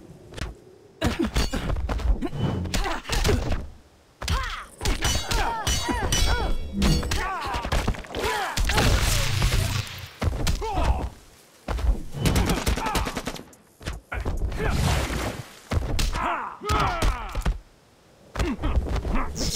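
Fighting game hit effects thud and crack as blows land.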